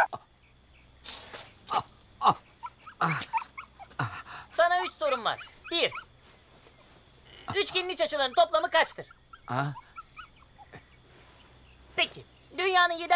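A middle-aged man groans in pain close by.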